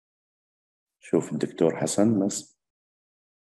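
A middle-aged man speaks briefly over an online call.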